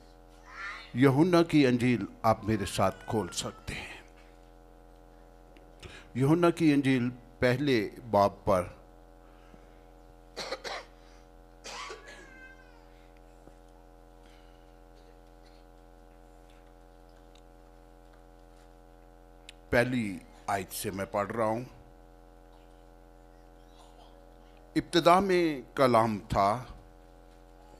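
An elderly man preaches through a microphone in bursts, with long pauses.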